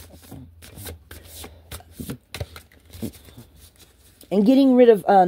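Playing cards are shuffled in hand with quick soft clicks.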